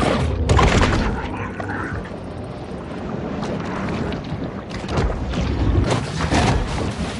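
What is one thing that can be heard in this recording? Water surges and splashes as a shark swims and lunges.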